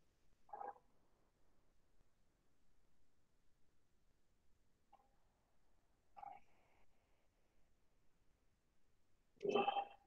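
Foil crinkles softly as it is twisted and folded by hand.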